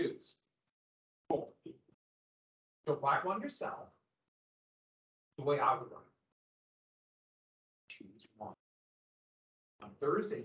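A man speaks calmly through a microphone, lecturing with pauses.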